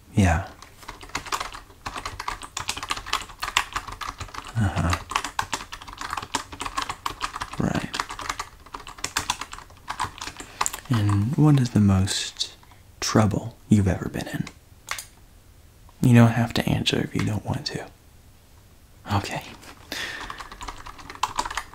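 Fingers type on a computer keyboard.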